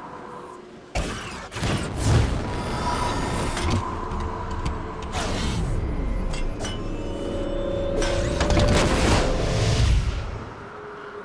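A magical beam crashes down with a loud whoosh and hum.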